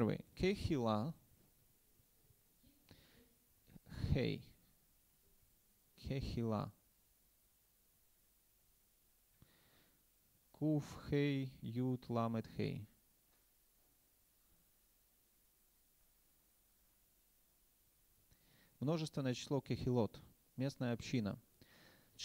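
A man speaks calmly into a microphone, in short phrases with long pauses.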